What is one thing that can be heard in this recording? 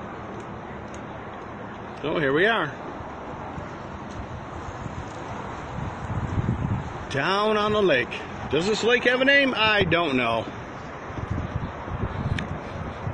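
Wind gusts rumble against the microphone outdoors.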